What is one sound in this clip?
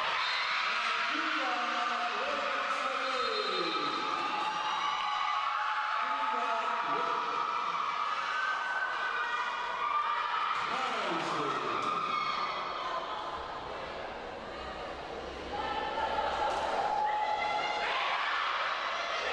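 Young women shout and cheer together in a large echoing hall.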